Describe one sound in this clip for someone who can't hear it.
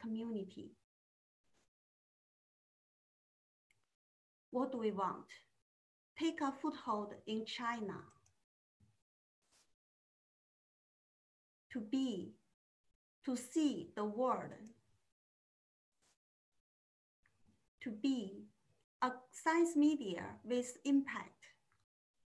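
A woman speaks calmly through a microphone, with pauses.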